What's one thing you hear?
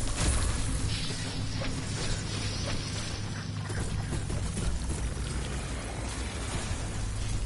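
Electric energy crackles and sizzles loudly.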